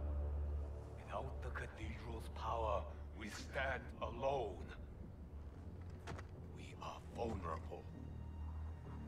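A man speaks slowly and gravely.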